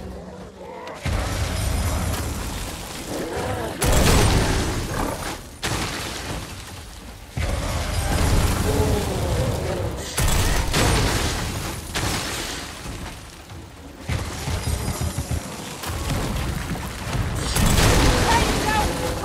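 Magic blasts crackle and boom loudly.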